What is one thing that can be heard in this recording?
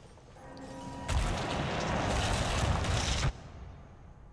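A magical burst whooshes and crackles as a chest opens.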